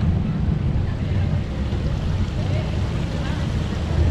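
A fountain splashes and trickles nearby.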